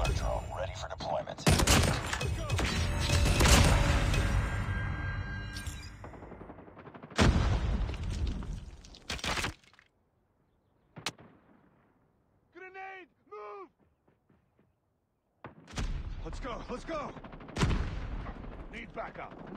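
Rifles fire in loud, rapid bursts.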